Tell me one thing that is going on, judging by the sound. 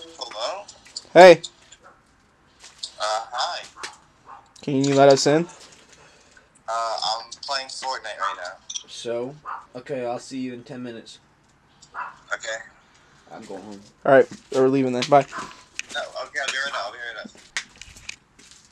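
A boy talks with animation through a phone video call.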